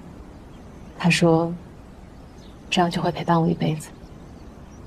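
A woman speaks softly and warmly.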